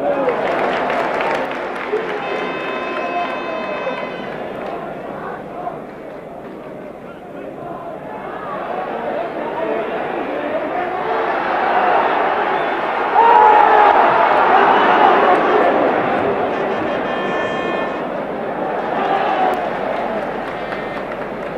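A large stadium crowd roars and cheers outdoors, swelling louder partway through.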